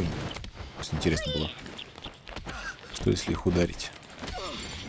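Heavy punches thud in a scuffle.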